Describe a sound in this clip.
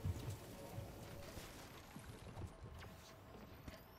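A video game character gulps down a drink with soft thumps.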